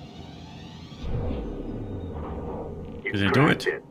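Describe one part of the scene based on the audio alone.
A deep electronic whoosh swells and fades.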